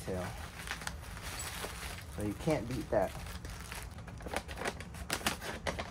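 Bubble wrap crinkles and rustles as it is handled.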